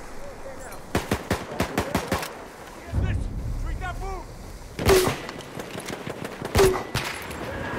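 A rifle fires sharp, loud shots close by.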